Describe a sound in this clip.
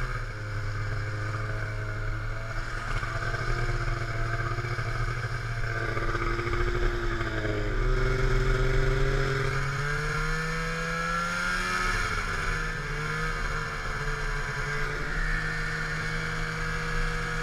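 Skis hiss over snow.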